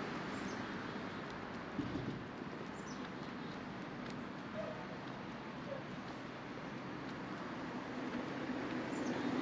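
Footsteps fall steadily on a paved path outdoors.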